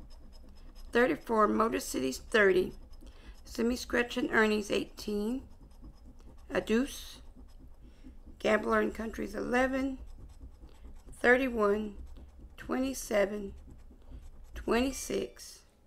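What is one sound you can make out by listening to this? A coin scratches against a paper card.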